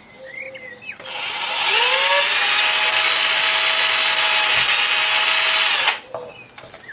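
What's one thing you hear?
An electric drill whirs loudly as it bores into plastic.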